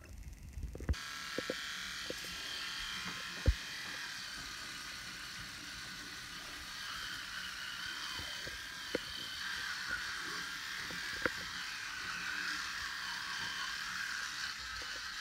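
An electric toothbrush buzzes steadily.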